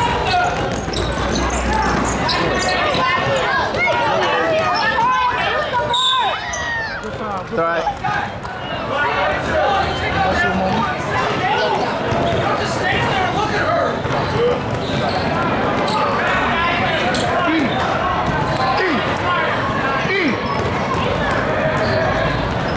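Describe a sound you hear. Basketball shoes squeak sharply on an indoor court in a large echoing gym.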